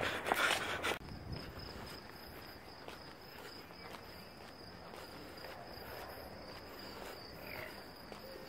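Footsteps walk along a paved path outdoors.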